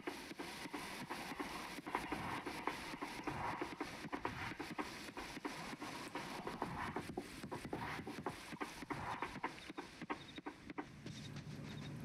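Footsteps patter quickly on a path.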